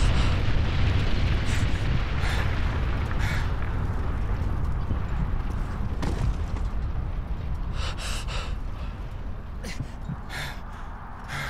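A fire roars with a deep, steady rumble that slowly fades.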